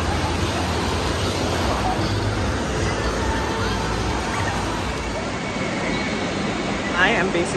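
Waves crash and churn in a wave pool.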